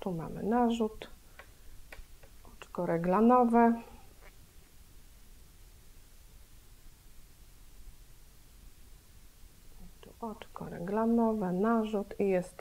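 A middle-aged woman speaks calmly and close to a microphone, in short bursts with pauses.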